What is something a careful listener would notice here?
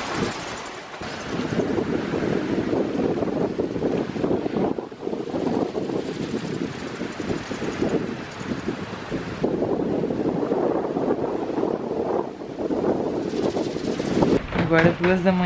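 Waves rush and splash against a sailing boat's hull.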